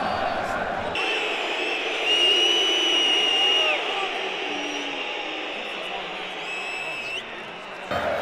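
Fans whistle shrilly in a large stadium.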